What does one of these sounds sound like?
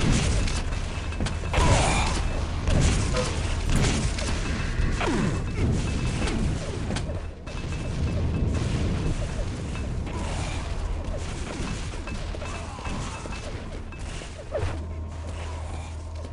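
Gunfire and explosions ring out from a fast game.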